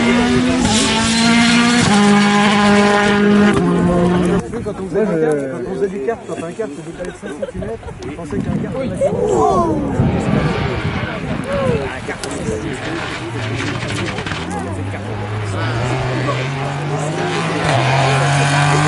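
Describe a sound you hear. A rally car engine roars loudly, shifting gears as it speeds past.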